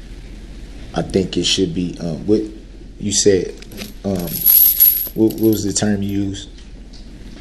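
An adult man speaks with animation.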